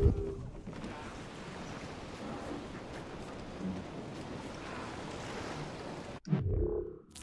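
Waves wash steadily against a sailing ship.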